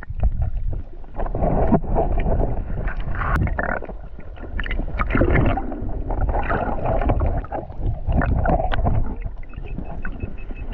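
Bubbles burst and rumble as a swimmer moves underwater.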